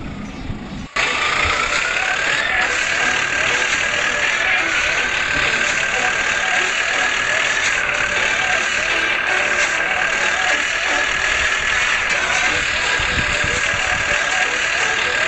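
A truck engine hums steadily and revs slightly.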